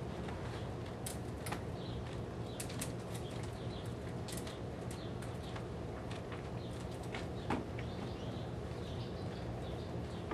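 Metal clanks and rattles inside a horse trailer.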